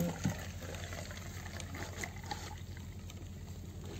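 Juice trickles into a glass.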